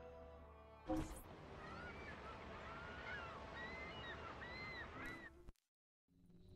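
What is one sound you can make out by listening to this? Water laps gently against a shore.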